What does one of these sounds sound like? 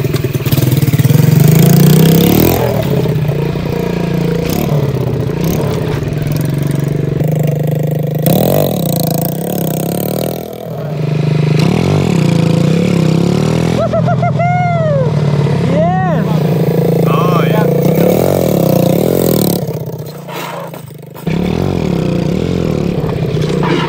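A small engine buzzes loudly and revs up and down.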